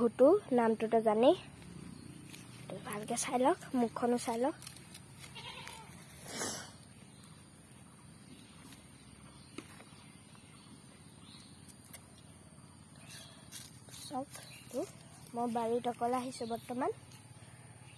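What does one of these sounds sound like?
A goat bleats loudly nearby, again and again.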